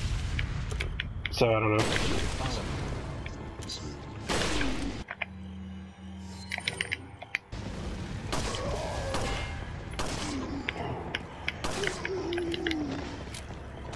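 Gunshots crack out one at a time.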